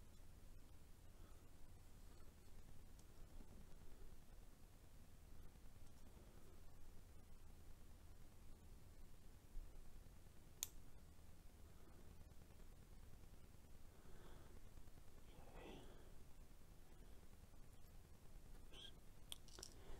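Small metal parts click faintly against pliers.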